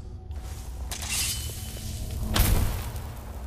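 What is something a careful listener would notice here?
A magic spell crackles and hums with a rising whoosh.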